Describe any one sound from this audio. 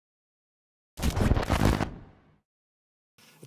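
Harsh tape static hisses and crackles loudly, then fades.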